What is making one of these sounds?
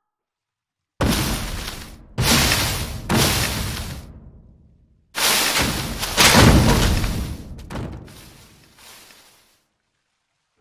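Loud explosions boom one after another and rumble away.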